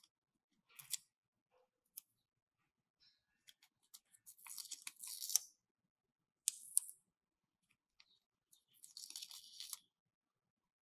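Paper backing crinkles and rustles as stickers are peeled.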